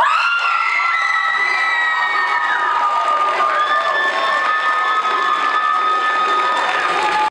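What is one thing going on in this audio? An audience claps and cheers loudly in a large room.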